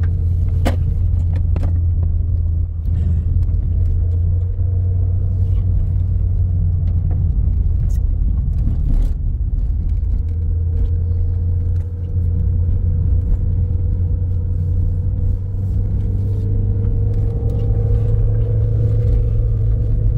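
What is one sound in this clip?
Small clicks and knocks rattle inside the car.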